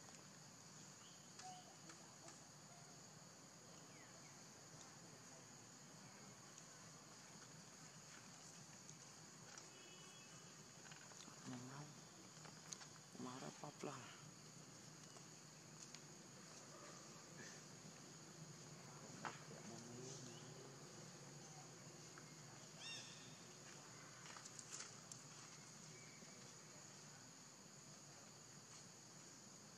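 A monkey softly picks and rustles through fur.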